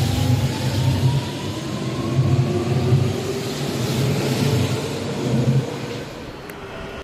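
A motor whine falls slowly in pitch as a train moves.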